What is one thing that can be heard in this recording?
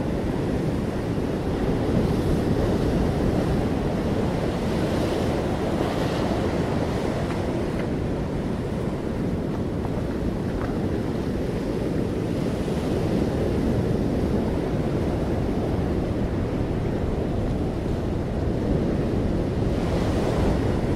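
Strong wind buffets outdoors, rumbling steadily.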